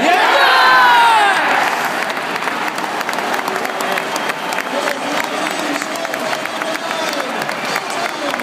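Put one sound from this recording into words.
Spectators clap.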